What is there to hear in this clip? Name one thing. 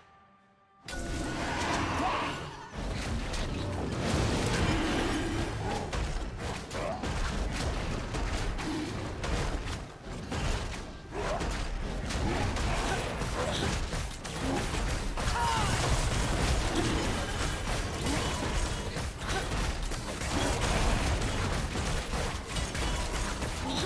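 Fantasy battle sound effects clash, whoosh and rumble.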